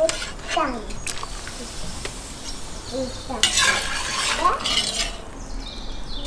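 A metal ladle scrapes against a large pot.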